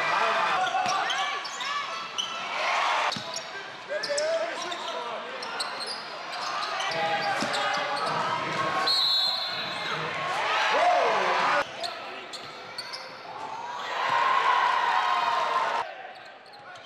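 A large crowd cheers and murmurs in an echoing hall.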